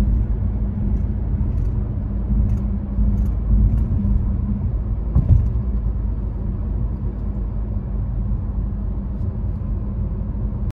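Tyres roll on a road with a low rumble.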